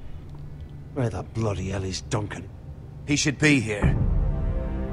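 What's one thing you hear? A man speaks angrily.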